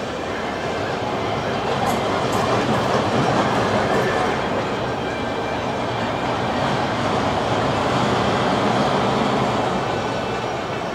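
A roller coaster train rumbles along its track in the distance.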